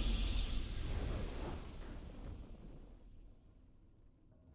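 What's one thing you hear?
A triumphant fanfare booms out and then fades away.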